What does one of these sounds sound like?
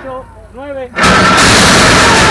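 A metal starting gate bangs open.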